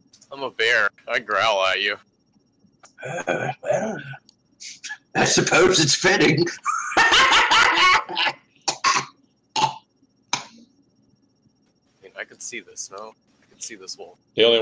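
Several men talk and laugh over an online call, heard through microphones.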